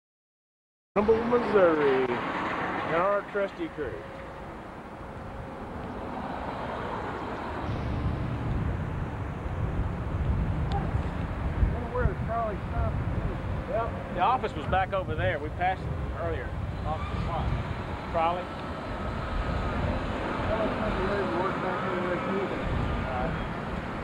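Men talk casually outdoors, close by.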